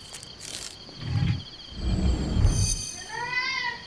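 A stone mechanism rumbles low and grinds.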